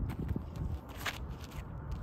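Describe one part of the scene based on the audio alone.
A player's feet land on a concrete tee pad during a disc throw.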